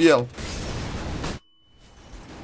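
A flash grenade goes off with a sharp bang and a high ringing.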